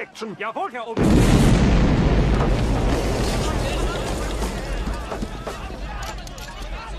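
A huge explosion roars and rumbles on.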